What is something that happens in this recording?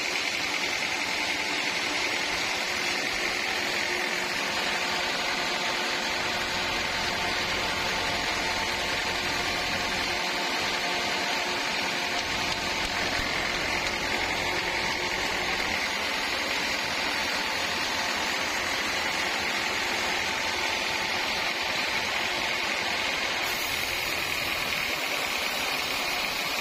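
A band saw machine whines steadily as it cuts through a log.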